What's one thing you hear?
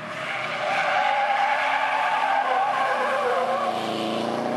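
A car engine revs hard as the car slides through a bend.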